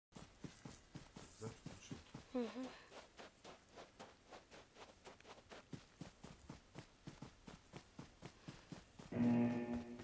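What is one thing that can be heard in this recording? Footsteps patter quickly over dry ground.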